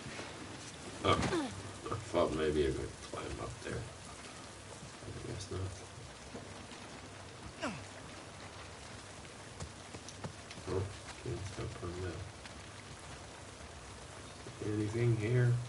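A man talks calmly into a microphone, in short bursts with pauses.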